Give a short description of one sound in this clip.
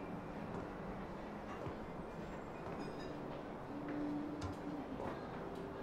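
Footsteps sound faintly on stairs.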